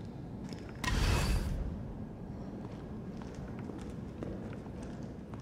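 Footsteps thud on a metal floor.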